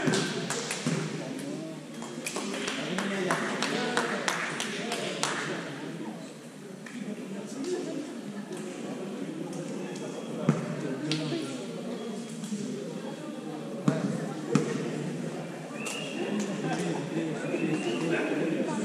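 Young players talk and call out to each other in a large echoing hall.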